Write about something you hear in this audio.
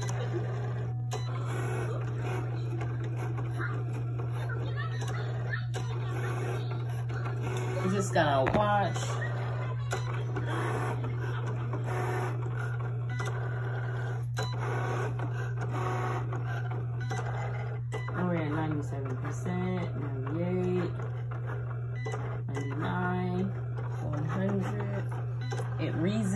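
A small cutting machine whirs as its carriage slides back and forth.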